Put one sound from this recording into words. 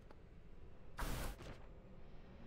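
A game menu makes a short whooshing chime as it opens.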